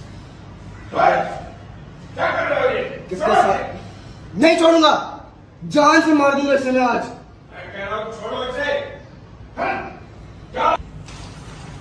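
A young man speaks angrily up close.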